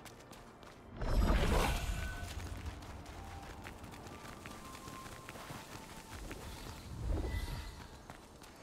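A magical spell bursts with a loud rushing whoosh.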